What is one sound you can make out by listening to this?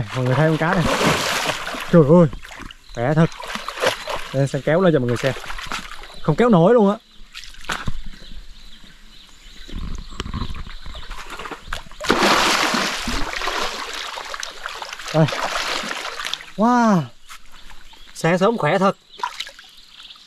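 A fish thrashes and splashes loudly in shallow water.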